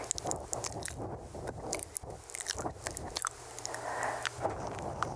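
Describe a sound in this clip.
Soft mouth clicks and lip sounds come close to a microphone.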